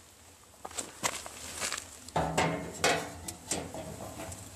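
A metal door clanks and scrapes open.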